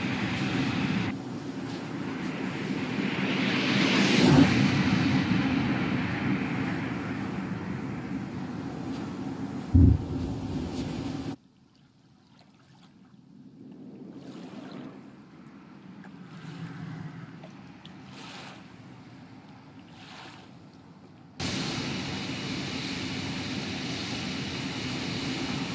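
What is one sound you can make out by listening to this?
A jet engine roars, swelling loudly as the jet sweeps close by and growing faint as it climbs away.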